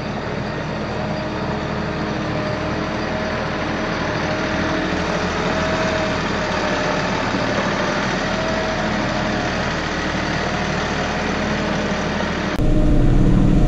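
A diesel compact tractor drives slowly past.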